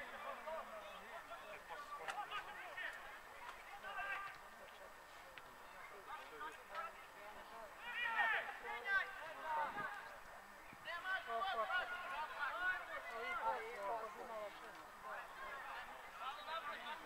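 Men shout to each other across an open outdoor field.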